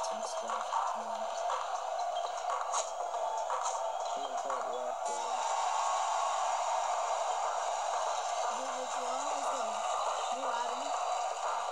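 Sneakers squeak on a basketball court in a game.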